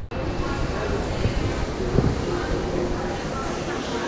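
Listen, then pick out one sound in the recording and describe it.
A mop swishes across a tiled floor.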